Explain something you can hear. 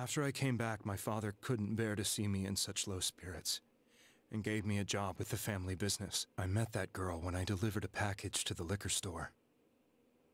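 A man speaks calmly and slowly, close to the microphone.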